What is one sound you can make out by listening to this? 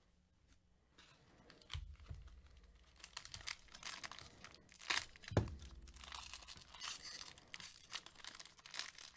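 A plastic wrapper crinkles and rustles as it is handled.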